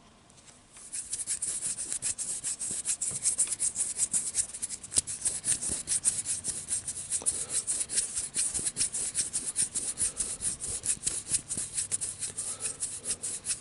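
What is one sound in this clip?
Fingertips rub and scrape against a microphone with a steady crackling.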